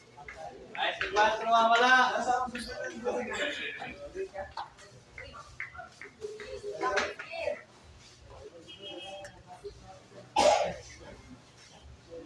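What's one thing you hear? Pool balls knock together and roll on the table.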